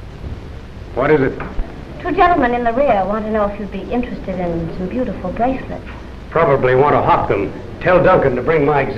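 A young woman speaks lightly.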